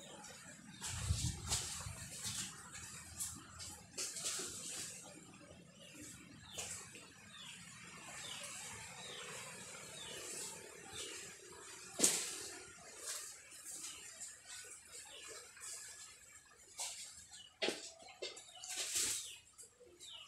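Wood knocks and thuds.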